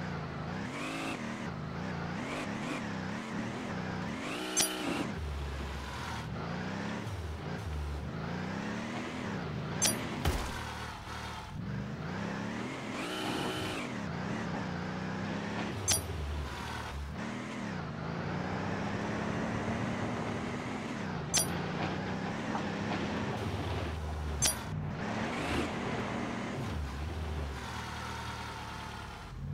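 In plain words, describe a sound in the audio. A truck engine revs and roars as it drives over rough ground.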